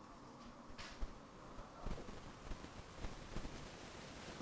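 Papers and objects thump softly on a table.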